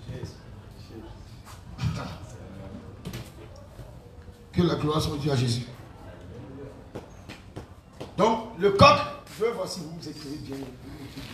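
A man preaches with animation into a microphone.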